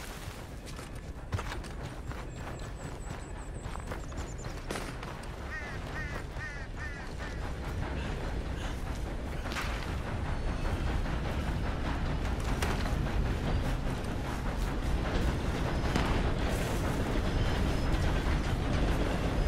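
Footsteps crunch on gravel and swish through grass.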